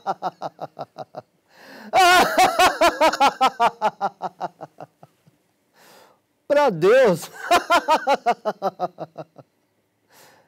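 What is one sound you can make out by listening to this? A man laughs heartily and loudly.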